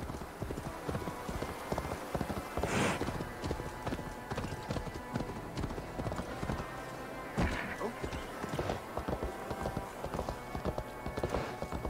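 Horse hooves clop on wooden planks.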